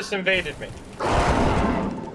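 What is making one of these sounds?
A fighter rolls heavily across rough ground.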